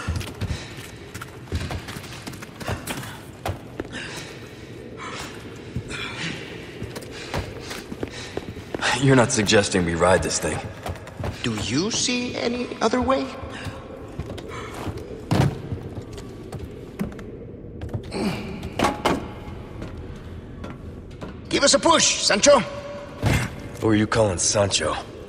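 Footsteps thud on stone and wooden boards.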